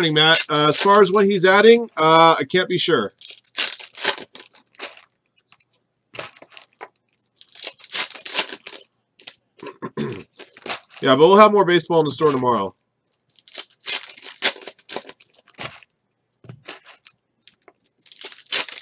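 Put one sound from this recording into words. A foil trading card pack crinkles as it is torn open.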